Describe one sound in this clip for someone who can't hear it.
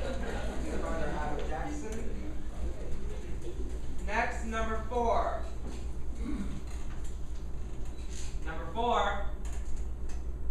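A young man speaks on a stage in an echoing hall.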